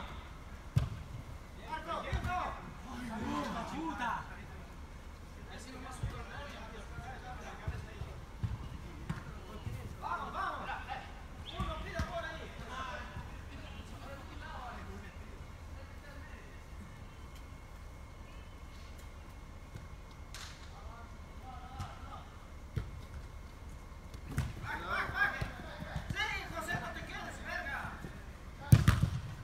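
A football thuds off a foot as it is kicked.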